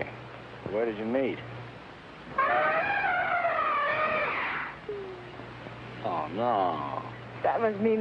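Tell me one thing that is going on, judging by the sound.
A young woman speaks brightly nearby.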